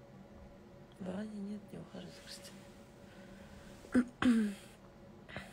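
A young woman murmurs softly close by.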